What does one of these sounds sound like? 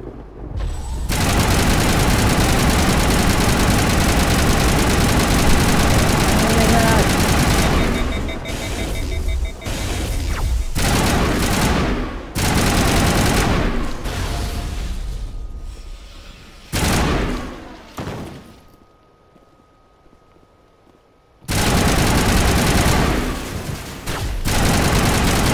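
Rapid gunfire blasts loudly and echoes.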